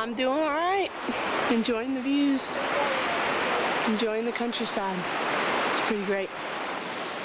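A woman speaks outdoors close by, calmly.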